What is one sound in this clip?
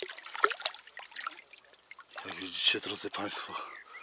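Water splashes close by as a fish is lifted out.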